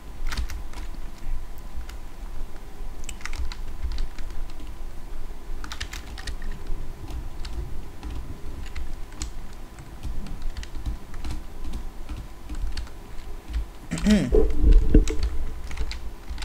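Footsteps thud quickly across a wooden floor indoors.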